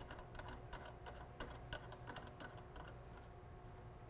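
A plastic valve part clicks softly as a hand turns it.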